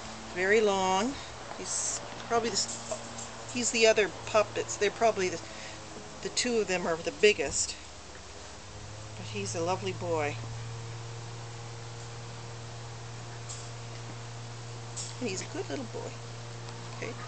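A woman speaks softly and coaxingly close by.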